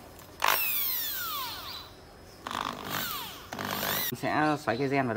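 An electric drill whirs and bores a hole.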